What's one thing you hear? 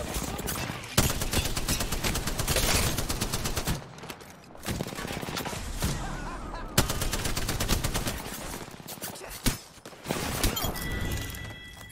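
Gunfire from a rapid-fire gun rattles in quick bursts.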